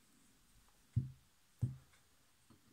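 A plastic wheel is set down with soft knocks on a wooden table.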